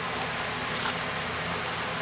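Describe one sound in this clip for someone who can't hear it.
A hand squishes through a thick, wet mixture.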